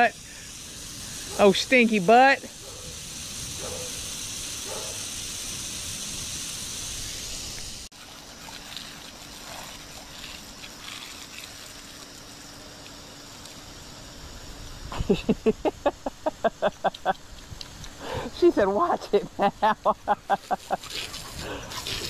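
Water hisses steadily as it sprays from a garden hose.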